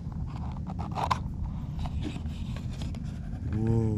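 A cardboard box lid flips open.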